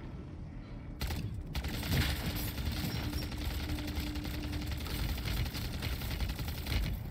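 Rapid gunfire crackles and booms in a video game.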